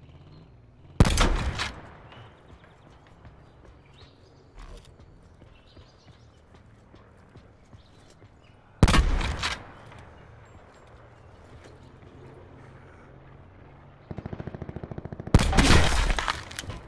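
A sniper rifle fires loud, booming single shots that echo away.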